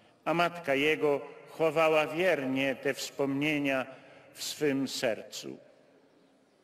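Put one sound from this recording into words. An elderly man chants a prayer through a microphone and loudspeakers outdoors.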